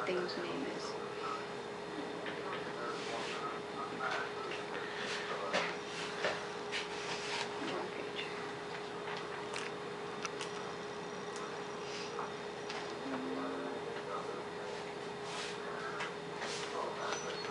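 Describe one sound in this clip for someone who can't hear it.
Pages of a magazine rustle as they are flipped.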